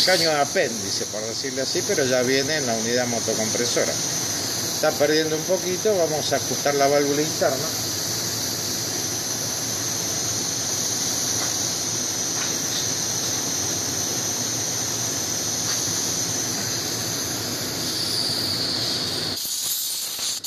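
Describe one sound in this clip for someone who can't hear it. A refrigeration compressor runs with a steady hum.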